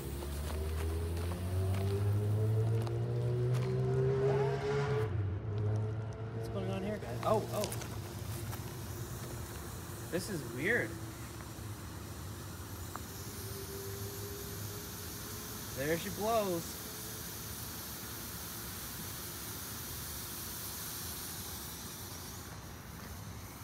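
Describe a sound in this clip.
A burning battery hisses as thick smoke pours out.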